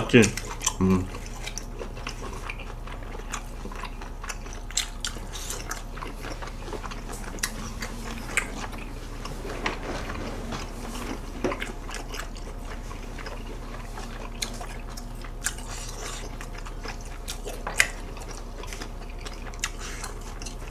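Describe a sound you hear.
A young man chews food close to a microphone.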